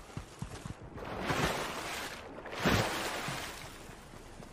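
Water splashes loudly in two big bursts.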